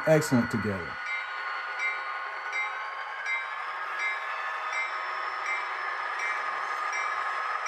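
A model diesel locomotive engine drones steadily through a small speaker.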